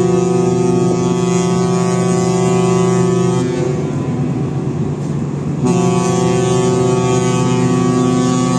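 A ship's horn blasts loudly twice, long and deep.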